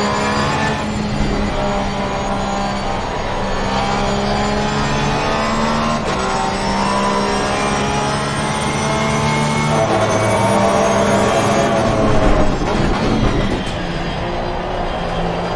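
A racing car engine roars loudly, its pitch rising and falling as the gears shift.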